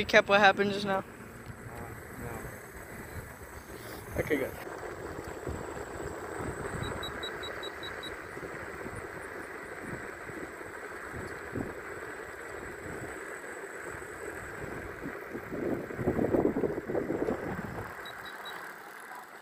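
Small wheels roll steadily over asphalt.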